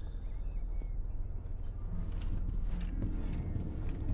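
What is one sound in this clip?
Soft footsteps pad across a carpeted floor.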